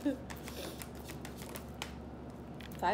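Playing cards shuffle and flick.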